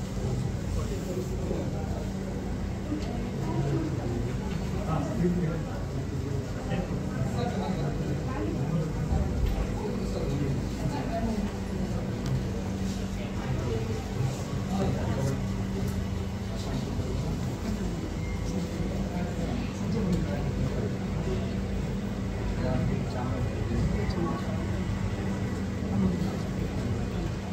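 A crowd of men murmurs and talks quietly nearby.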